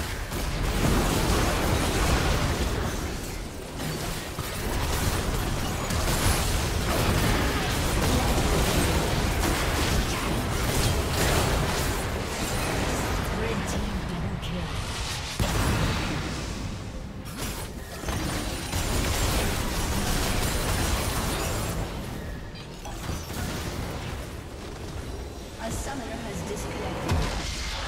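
Game spell effects burst and crackle in a fierce fight.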